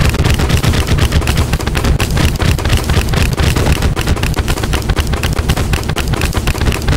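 Video game weapon sound effects fire in rapid bursts.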